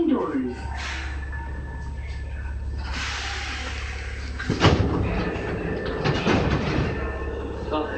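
Train wheels clack and squeal on the rails.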